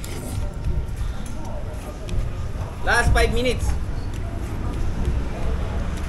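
A man chews food with soft smacking sounds.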